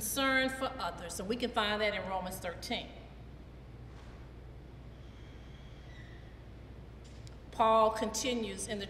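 A middle-aged woman speaks with animation into a microphone, pausing between phrases.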